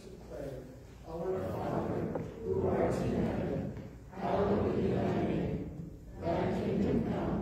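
A group of men and women recite together in an echoing hall.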